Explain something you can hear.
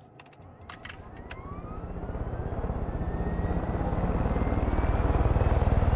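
A helicopter engine whines up to speed.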